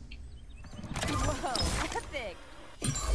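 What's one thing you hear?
A chest creaks open.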